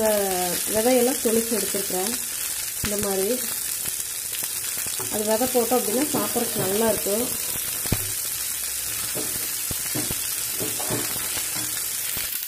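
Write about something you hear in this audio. A metal spatula scrapes and stirs food in a metal pan.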